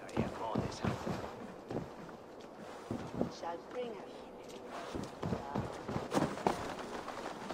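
Footsteps thud quickly across a wooden rooftop.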